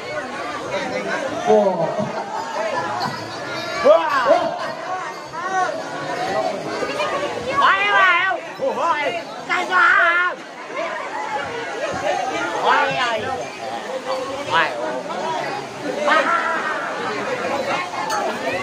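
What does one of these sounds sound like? Several men talk and call out loudly in a lively crowd.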